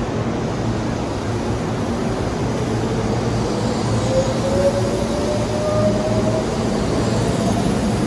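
An electric train pulls away with a rising motor whine.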